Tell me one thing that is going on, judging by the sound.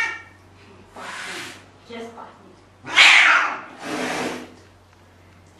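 A cat hisses.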